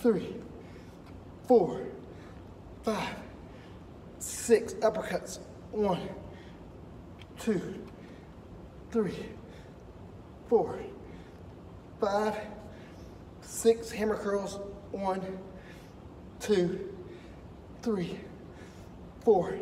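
A man grunts and exhales forcefully in a steady rhythm, close by.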